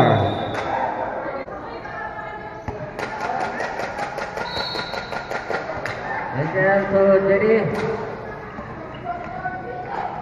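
A crowd of spectators chatters under a large echoing roof.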